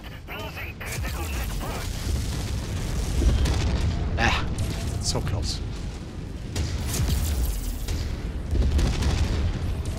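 Laser weapons fire with sharp zaps.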